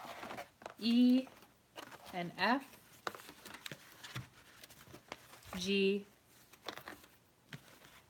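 Cardboard rustles and scrapes as it is handled.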